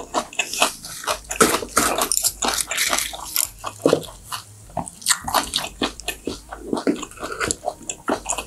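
Lettuce leaves crinkle and rustle close to a microphone.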